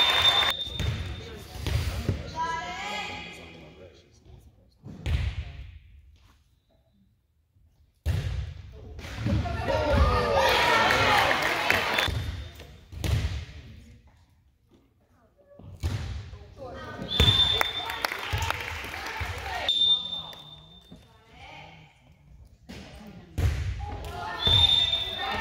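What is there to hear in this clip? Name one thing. A volleyball is hit with loud thuds that echo through a large hall.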